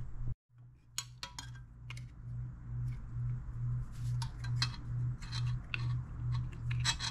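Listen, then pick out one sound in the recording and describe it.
Small metal parts click and clink as they are handled.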